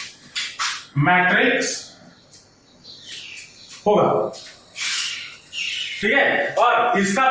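A man speaks in a lively teaching voice, close by.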